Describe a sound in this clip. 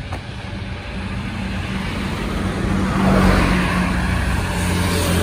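A car drives past, its tyres hissing on the road.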